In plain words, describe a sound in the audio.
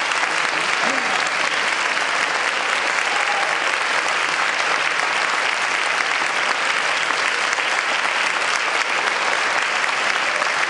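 An orchestra plays loudly in a large echoing hall.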